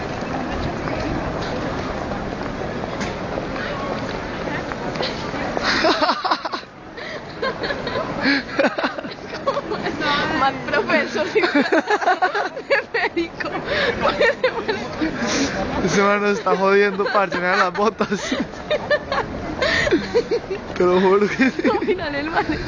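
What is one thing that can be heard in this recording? A crowd of pedestrians murmurs and chatters outdoors.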